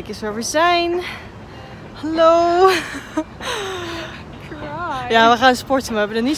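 A second young woman laughs nearby.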